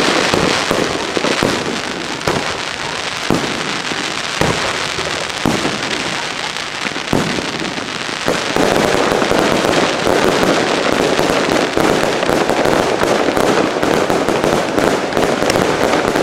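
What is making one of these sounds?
Fireworks boom and crackle in the distance.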